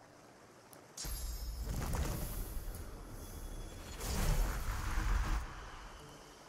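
A magic blast bursts with a loud rushing whoosh.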